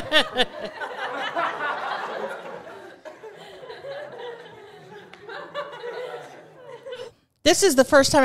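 A middle-aged woman laughs heartily close to a microphone.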